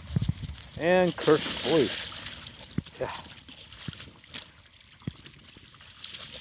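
Dogs splash through shallow water.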